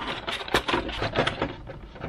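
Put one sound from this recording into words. A screwdriver turns a small screw into plastic.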